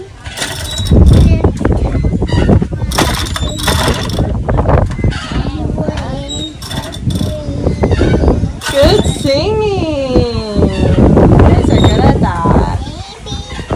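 A plastic toy dial clicks and rattles as children turn it.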